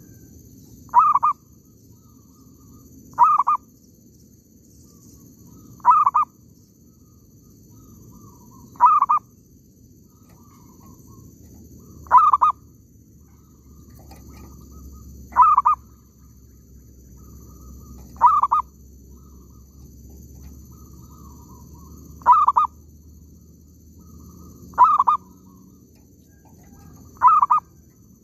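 A bird calls close by with short, sharp calls that repeat every few seconds.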